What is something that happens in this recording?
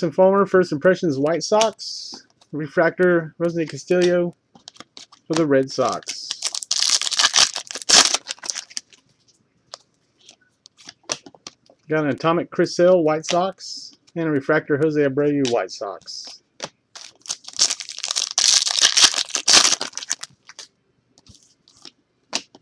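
Trading cards flick and rustle as hands sort through them.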